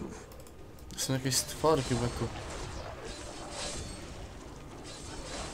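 Weapons strike and slash in a close fight.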